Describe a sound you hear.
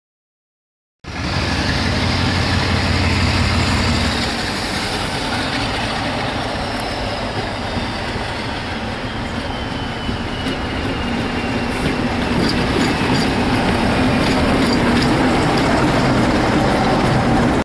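A Class 47 diesel locomotive hauling coaches approaches and passes close by.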